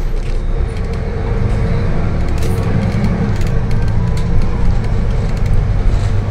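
A bus engine revs up as the bus pulls away.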